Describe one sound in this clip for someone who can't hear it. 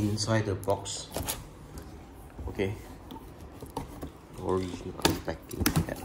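Scissors slice through packing tape.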